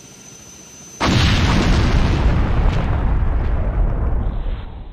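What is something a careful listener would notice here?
A large fire roars and crackles loudly.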